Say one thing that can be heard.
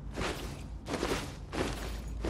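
A blast bursts with a sharp crack.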